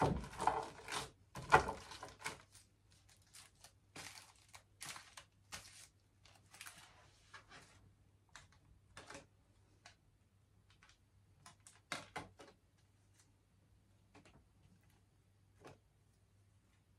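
Cards shuffle and slap softly close by.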